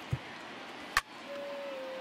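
A bat cracks against a baseball.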